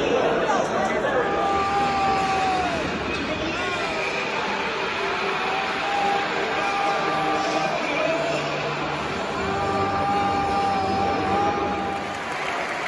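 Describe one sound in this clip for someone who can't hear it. A child blows a hooting whistle through cupped hands.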